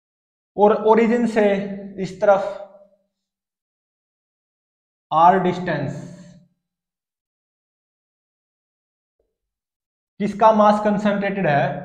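A young man explains calmly and clearly, close by, in short bursts with pauses.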